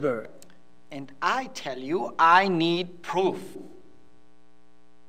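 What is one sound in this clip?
A middle-aged man speaks calmly and close by.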